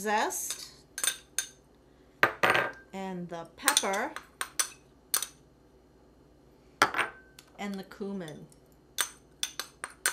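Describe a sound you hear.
A metal spoon clinks against a glass bowl.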